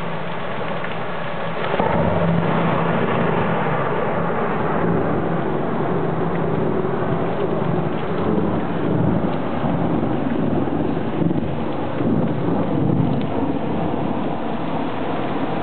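Strong wind gusts and roars through trees.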